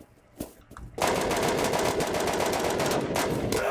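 An automatic rifle fires rapid bursts at close range.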